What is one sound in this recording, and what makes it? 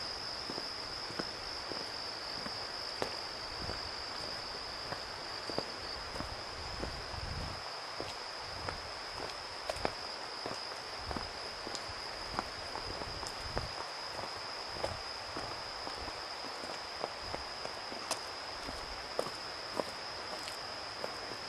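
Footsteps tread steadily along a path outdoors.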